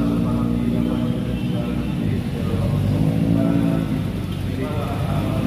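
Car engines rumble by nearby.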